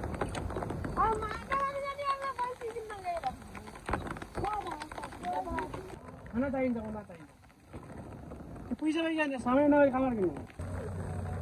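A woman talks loudly nearby, outdoors.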